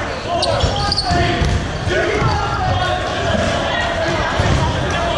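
Young men and women shout and call out in a large echoing hall.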